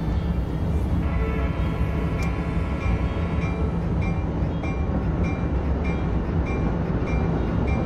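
A passing train hums closely alongside.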